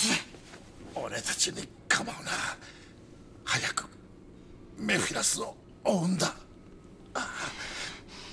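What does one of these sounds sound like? A man shouts urgently up close.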